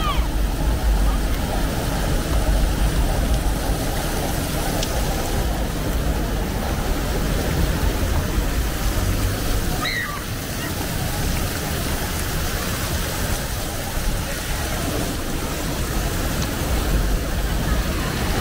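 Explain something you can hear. Fountain jets spray and splash steadily onto wet pavement outdoors.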